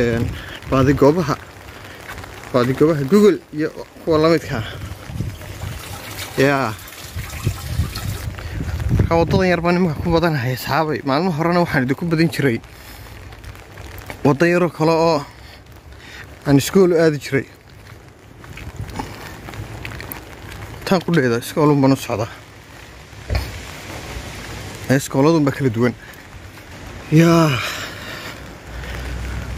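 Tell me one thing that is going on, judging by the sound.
A man talks calmly and close to a microphone, outdoors.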